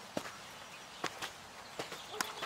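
Footsteps crunch on the ground outdoors.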